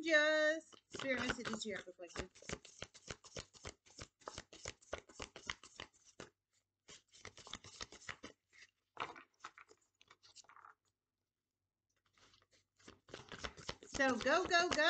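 Cards riffle and flutter rapidly as a deck is shuffled.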